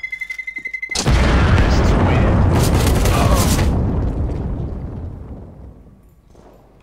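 A bomb explodes with a loud, deep roar that slowly fades away.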